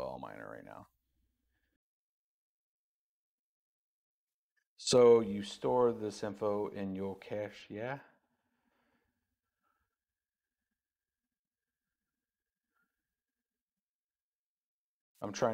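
A man speaks calmly into a close microphone, with long pauses.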